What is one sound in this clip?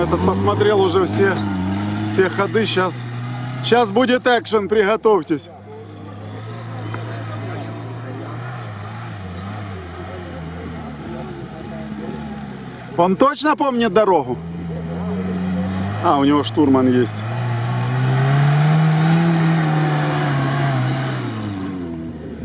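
An off-road vehicle's engine rumbles and revs as it climbs over sandy ground.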